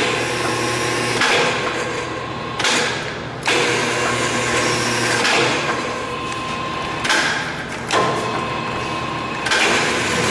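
Machinery hums steadily nearby.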